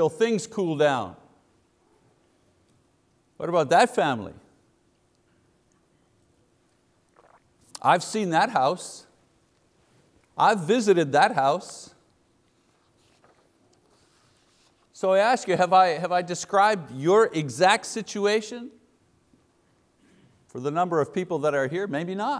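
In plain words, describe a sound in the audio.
A middle-aged man speaks with animation through a microphone, in phrases with pauses between them.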